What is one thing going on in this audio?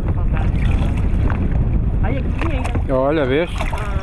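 A paddle splashes through water.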